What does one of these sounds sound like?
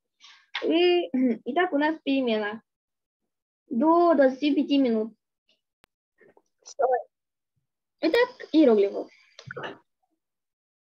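A young girl talks calmly and close through an online call.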